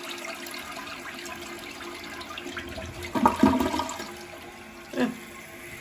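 Water swirls and gurgles down a toilet bowl.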